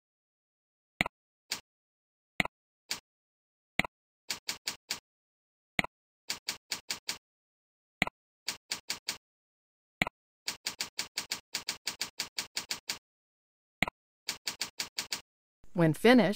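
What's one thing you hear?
Computer keys click rapidly as someone types.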